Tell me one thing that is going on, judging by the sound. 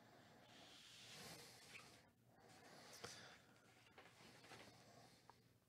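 Glossy paper rustles softly as pages are handled.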